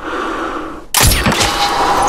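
A rifle fires a single loud, sharp shot.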